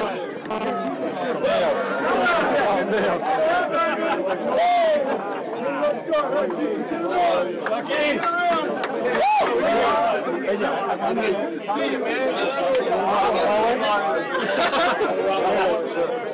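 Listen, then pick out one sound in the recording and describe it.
A crowd of men and women talk and shout close by, all at once.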